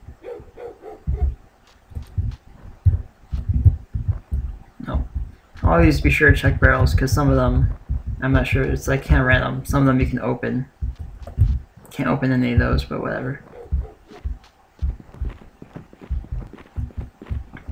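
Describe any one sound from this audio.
Footsteps thud quickly on a dirt path.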